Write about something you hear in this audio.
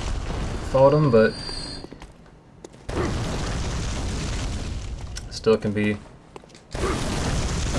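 Fiery explosions roar.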